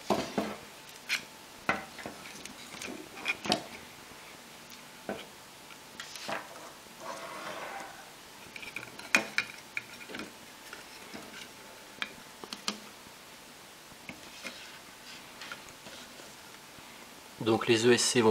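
Light frame parts knock and clatter as they are handled.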